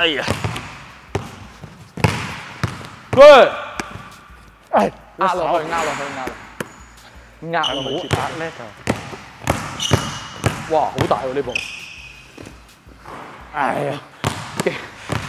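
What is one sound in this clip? A basketball bounces on a wooden court floor, echoing in a large hall.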